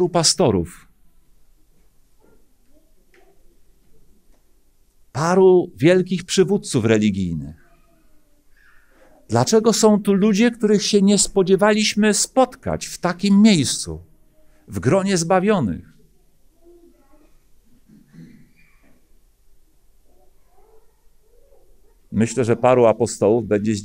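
A middle-aged man speaks calmly into a microphone in bursts with long pauses.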